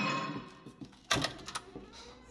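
A hand presses against a wooden wall with a soft knock.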